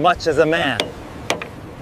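A hammer clangs against a heavy steel chain.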